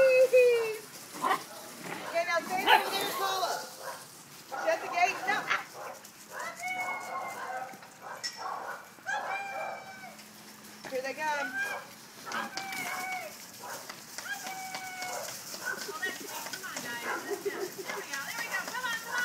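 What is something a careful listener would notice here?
Dogs bark and yelp nearby.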